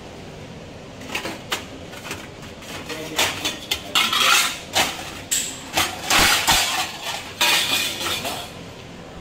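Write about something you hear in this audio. Steel dishes clank and clatter against a metal rack.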